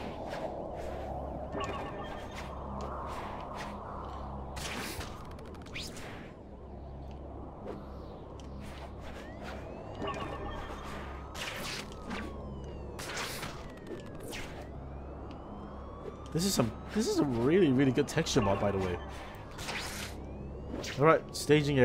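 Air rushes past in whooshing gusts as a figure swings and falls.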